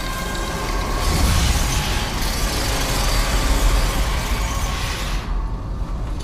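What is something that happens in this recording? A massive metal door grinds and rumbles heavily as it rolls open.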